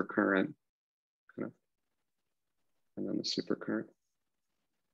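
A man speaks calmly in short phrases through a microphone, as if in an online call.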